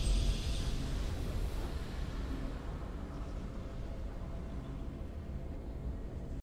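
A triumphant game victory tune plays and slowly fades.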